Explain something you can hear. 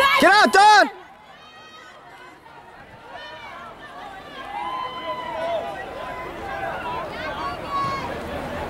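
Young women's voices shout encouragement in the distance.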